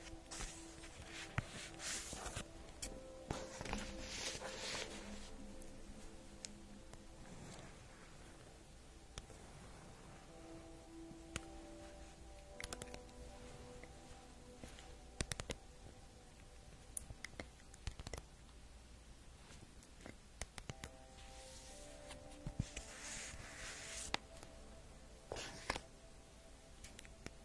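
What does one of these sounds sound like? Paper cards rustle and tap close to a microphone.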